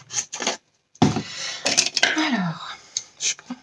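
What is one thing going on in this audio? A cardboard box rustles and scrapes as hands handle it.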